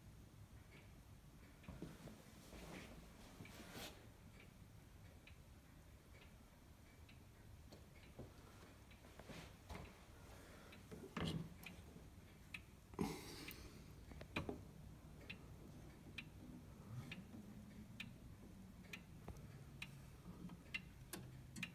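A clock ticks steadily and softly.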